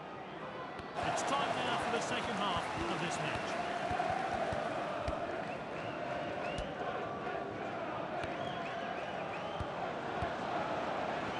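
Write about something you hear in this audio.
A football thumps as it is kicked.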